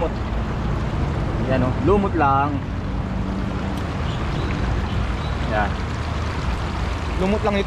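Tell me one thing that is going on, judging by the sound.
Water laps gently against a stone edge.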